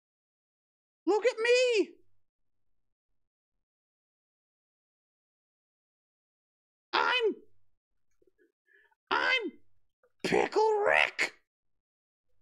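A man speaks with animation into a close microphone, in short bursts.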